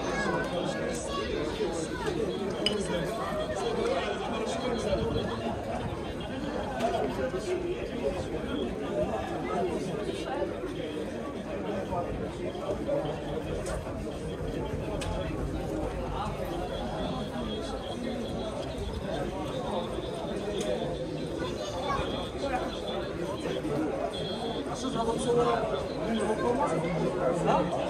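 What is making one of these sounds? Men chat in low voices nearby, outdoors.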